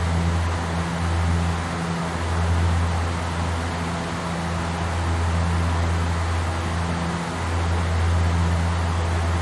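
Aircraft engines drone steadily with a low hum.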